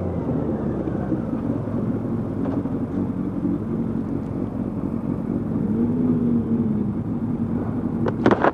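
Wind buffets past the rider.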